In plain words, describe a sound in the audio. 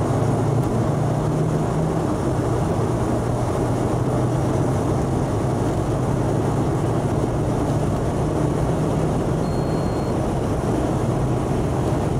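Tyres roar on the road, echoing through a tunnel.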